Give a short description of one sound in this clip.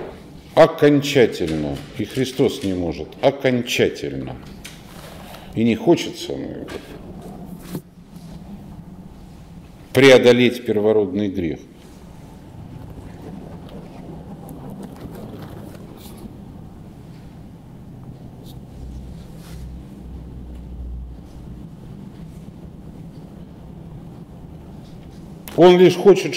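A middle-aged man speaks calmly and thoughtfully, close by, with long pauses.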